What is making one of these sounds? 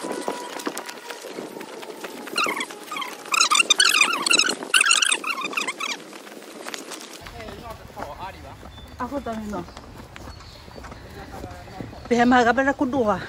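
Footsteps rustle through grass and leaves on a path.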